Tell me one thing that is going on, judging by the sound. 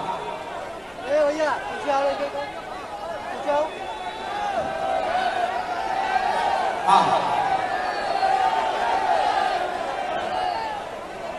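A young man speaks loudly into a microphone over loudspeakers, outdoors.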